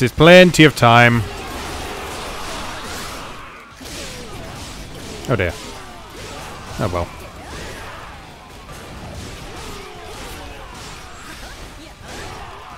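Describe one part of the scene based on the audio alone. Weapons clash and strike over and over in a noisy battle.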